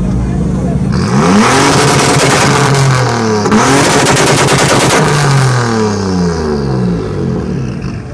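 A car engine revs hard, rising and falling loudly several times.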